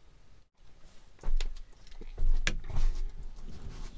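A man steps into a vehicle with a few thuds.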